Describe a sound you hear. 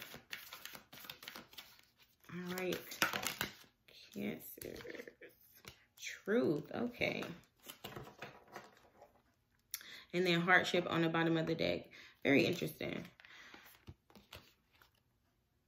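Playing cards riffle and slap as they are shuffled and laid down.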